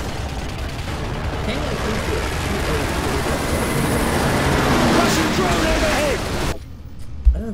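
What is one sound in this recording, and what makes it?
A loud, dense roar of distant battle fills the air, then cuts off abruptly.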